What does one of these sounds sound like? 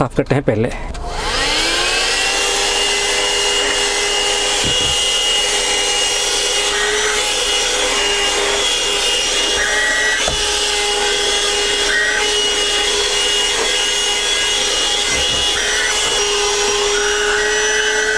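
A small handheld vacuum cleaner whirs up to speed and hums steadily with a high whine.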